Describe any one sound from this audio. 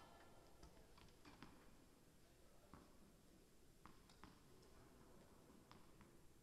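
Tennis balls are struck with rackets in a large echoing hall, with sharp pops coming every second or so.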